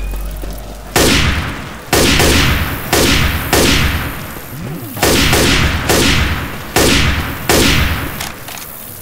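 A rifle fires heavy single shots that echo.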